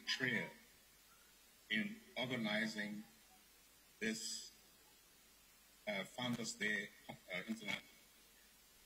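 A man speaks in short phrases through a microphone, echoing in a large hall.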